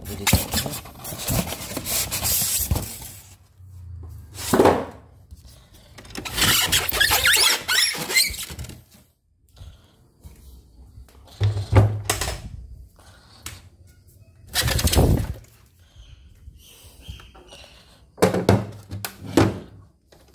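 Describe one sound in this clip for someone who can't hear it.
Styrofoam packing squeaks and rubs as hands handle it.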